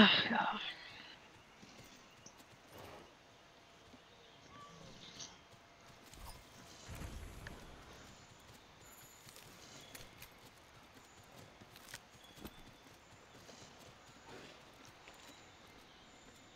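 Footsteps patter softly on dirt and grass.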